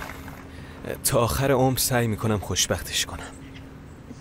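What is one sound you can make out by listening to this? A young man speaks softly and warmly.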